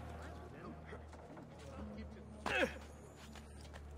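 A heavy thud of someone landing on stone.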